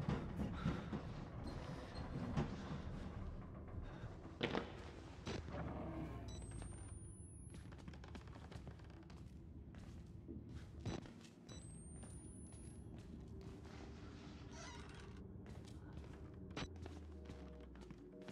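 Footsteps crunch slowly over a gritty floor.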